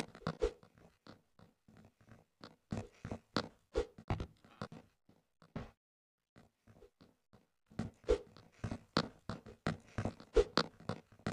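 Quick footsteps patter on a hard floor.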